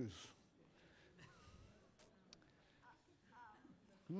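Young children answer in soft voices.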